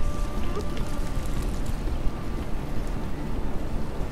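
An electronic keypad beeps as it unlocks.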